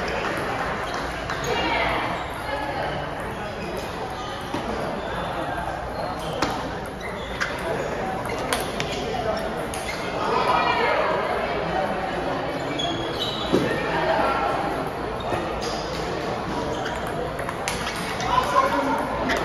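A ping pong ball clicks sharply off paddles and a table in a rally.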